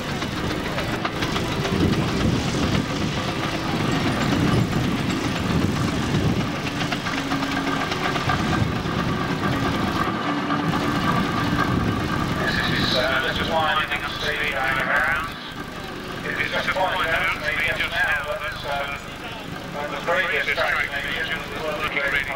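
A steam traction engine chuffs as it rolls backward.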